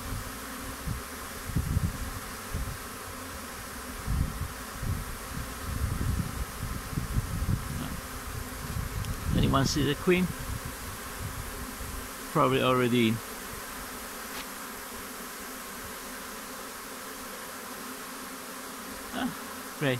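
A swarm of bees buzzes steadily close by.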